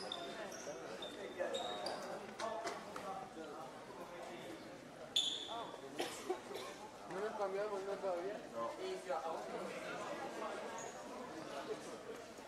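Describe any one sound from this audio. Young players' voices call out across a large echoing hall.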